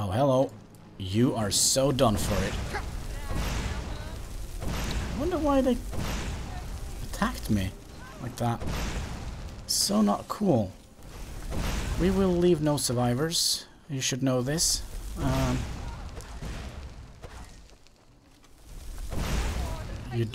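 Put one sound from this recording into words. Flames roar and whoosh in bursts.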